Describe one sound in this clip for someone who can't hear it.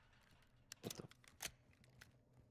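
A rifle clicks and clacks as it is handled.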